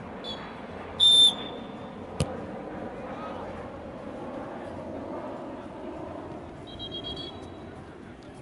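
A referee's whistle blows short, sharp blasts.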